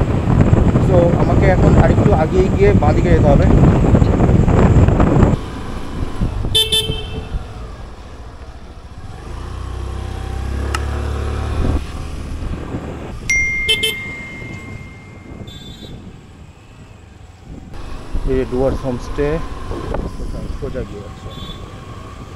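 A scooter rolls along a road with wind rushing past.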